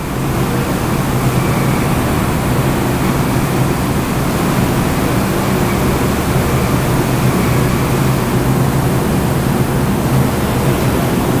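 Factory machinery hums and rattles steadily in a large echoing hall.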